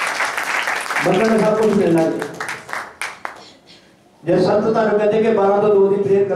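An elderly man preaches with animation into a microphone in an echoing room.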